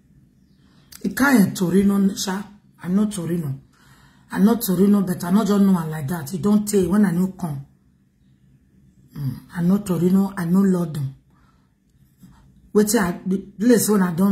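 A woman speaks with animation through an online call.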